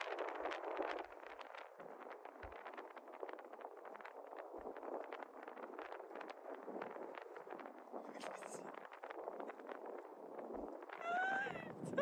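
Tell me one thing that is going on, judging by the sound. Small waves lap gently on a shore.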